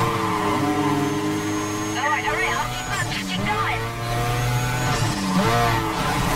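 A car engine roars at high speed, its pitch rising and dropping with gear changes.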